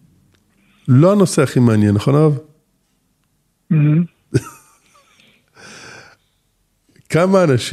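An elderly man speaks calmly and warmly, close to a microphone.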